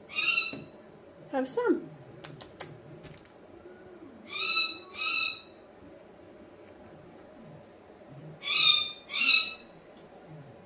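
A cockatoo gives short, sharp, high calls.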